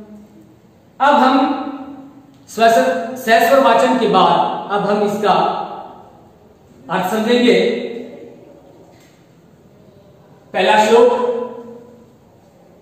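A middle-aged man speaks calmly and clearly in short phrases, close to a microphone.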